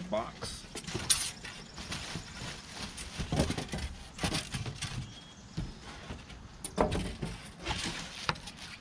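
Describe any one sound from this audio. Foam packing squeaks and scrapes against cardboard.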